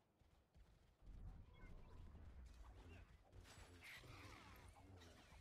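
Rocks crash and tumble to the ground.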